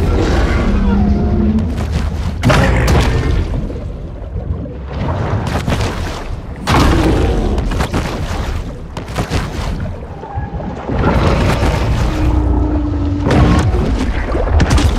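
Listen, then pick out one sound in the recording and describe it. Deep underwater rumbling and swirling water fill the whole stretch.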